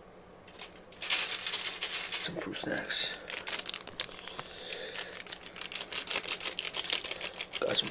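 Plastic snack wrappers crinkle and rustle.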